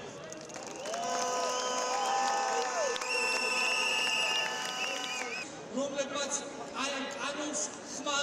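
A large crowd chants and cheers outdoors.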